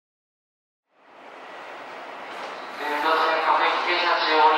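A train rolls in and brakes to a stop.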